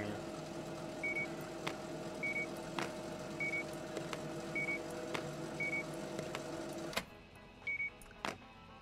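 A checkout scanner beeps briefly, again and again.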